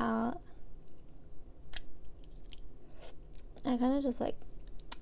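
A young woman speaks briefly and calmly, close by.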